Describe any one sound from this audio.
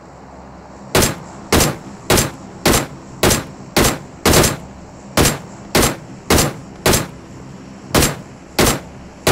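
Rifle shots fire in a steady, rapid rhythm.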